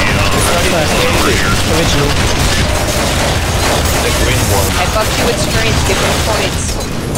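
Automatic guns fire in rapid bursts.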